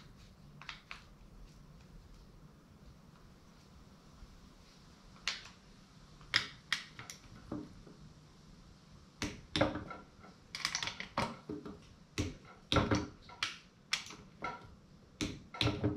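Metal tools click and clatter against an engine block.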